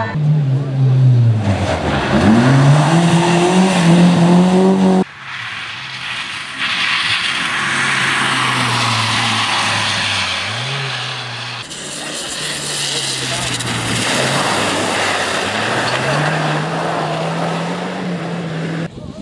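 A rally car engine revs hard and roars past up close.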